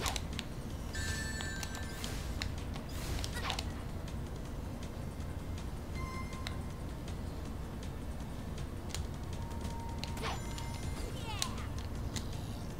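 Bright chiming sound effects ring out again and again.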